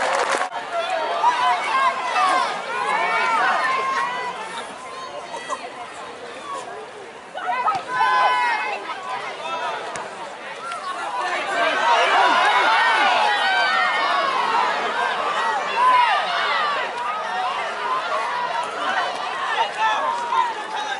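A crowd of spectators cheers and shouts excitedly outdoors.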